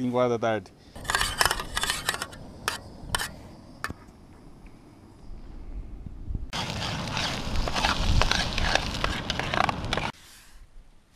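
Eggs sizzle in a hot pan.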